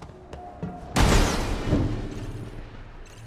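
Wooden boards smash and clatter loudly.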